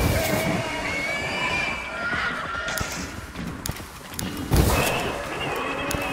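A fireball bursts with a deep roar.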